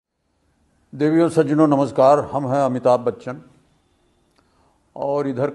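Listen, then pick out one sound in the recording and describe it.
An elderly man speaks calmly and earnestly, close by.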